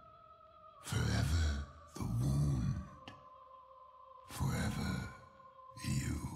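A young man speaks into a close microphone in short bursts.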